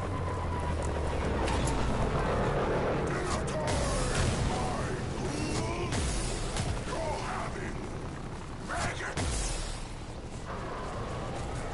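Energy weapons fire in quick bursts with sharp zaps.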